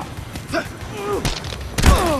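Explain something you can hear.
Heavy blows thud during a struggle.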